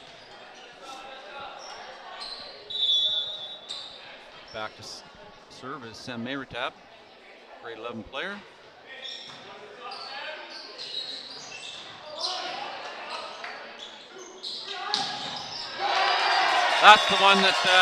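A volleyball is struck with sharp slaps in an echoing gym.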